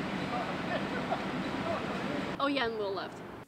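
A young man speaks casually outdoors.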